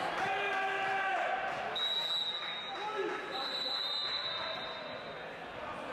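Spectators chatter in the background.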